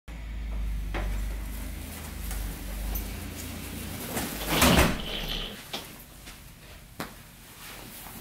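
Footsteps thud on a carpeted floor.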